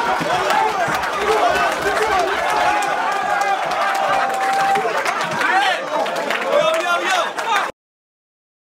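A man raps loudly into a microphone before a crowd.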